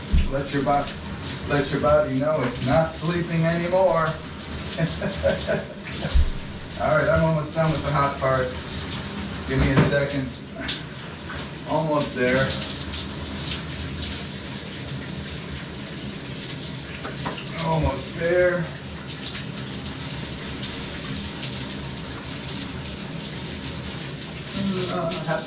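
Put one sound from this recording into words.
Water from a shower sprays and splashes steadily.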